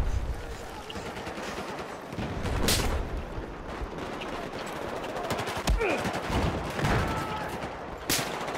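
Rapid gunfire crackles and booms in bursts.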